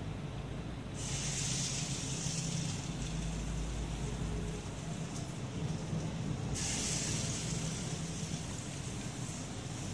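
Batter sizzles loudly as it drops into hot oil.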